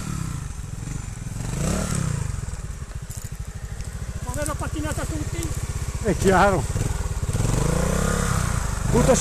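A dirt bike engine putters and revs close by.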